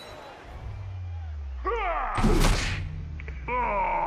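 A heavy thud sounds as players collide.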